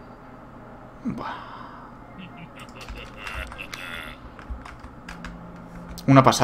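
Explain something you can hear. Game sound effects click and chime.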